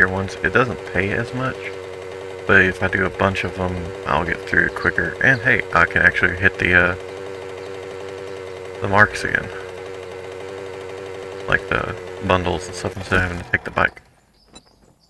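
A small motorbike engine hums steadily as it rides along.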